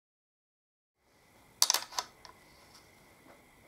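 A metal wrench clinks against a bolt.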